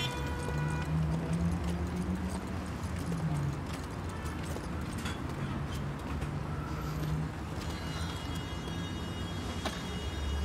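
Footsteps walk along a pavement.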